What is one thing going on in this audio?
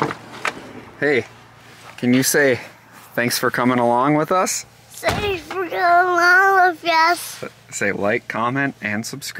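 A young child talks and sings in a high voice close by.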